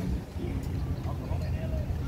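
A pickup truck drives past on the road.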